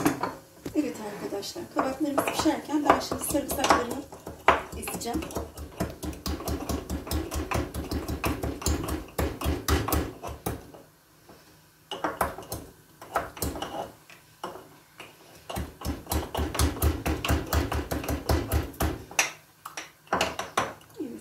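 A wooden pestle pounds rapidly in a wooden mortar.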